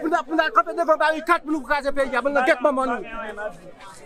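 A man shouts with animation close to a microphone.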